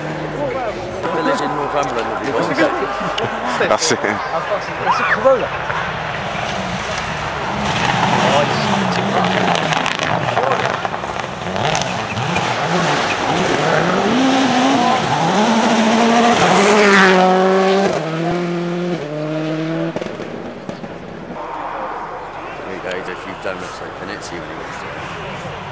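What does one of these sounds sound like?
A rally car engine roars and revs hard as the car speeds past, shifting up through the gears.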